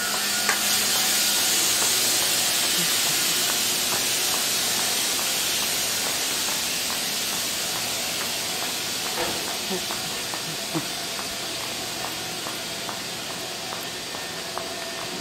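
A train rolls past close by with a steady rushing roar that slowly fades.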